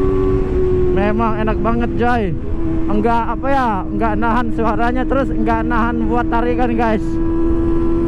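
A motorcycle engine revs in quick repeated bursts.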